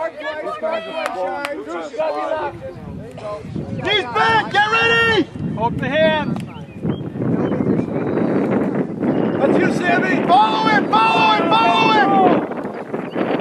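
Men shout loudly from close by outdoors.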